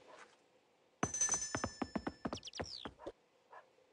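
A tablet game plays bright chiming sound effects.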